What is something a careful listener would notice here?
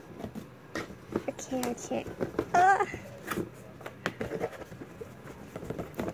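A cardboard box scrapes and taps as hands handle it.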